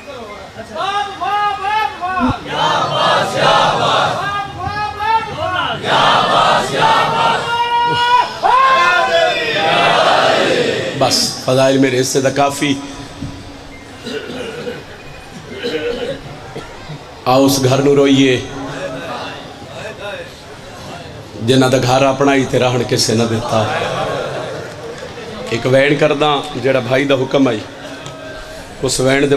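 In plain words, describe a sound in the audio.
A man recites with emotion into a microphone, heard through loudspeakers.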